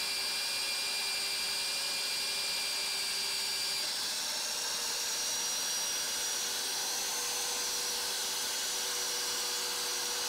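A drill bit grinds and scrapes through metal.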